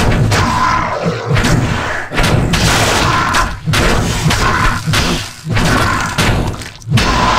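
Weapons strike and clash repeatedly in a fight.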